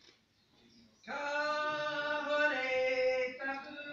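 A man chants loudly in a large hall.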